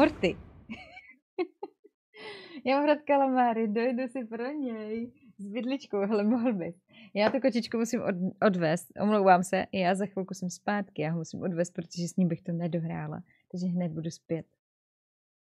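A young woman talks and laughs with animation, close to a microphone.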